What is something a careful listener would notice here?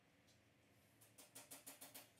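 A skipping rope slaps rhythmically on the ground.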